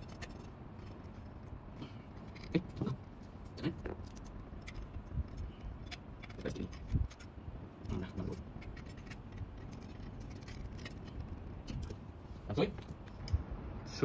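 Small metal parts click and tap as a bracket is fitted by hand.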